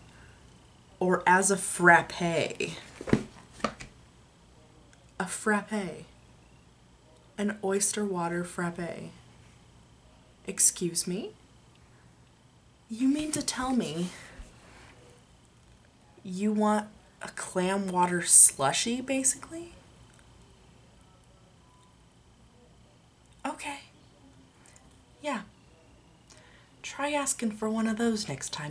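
A young woman talks close to a microphone in short bursts, with pauses between.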